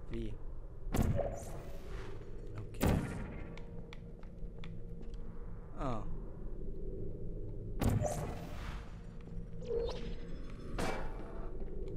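A sci-fi gun fires with a sharp electric zap, several times.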